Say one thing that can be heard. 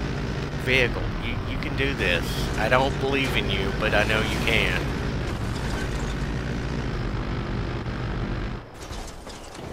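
An armoured vehicle's engine rumbles steadily.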